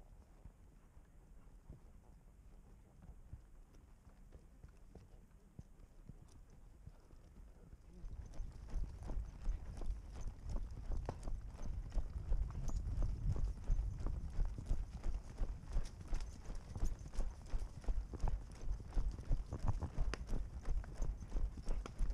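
Horse hooves thud on a soft dirt trail, growing louder and faster partway through.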